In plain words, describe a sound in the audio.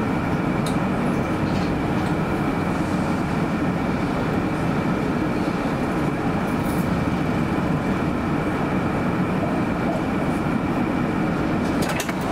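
Traffic rumbles steadily in the street.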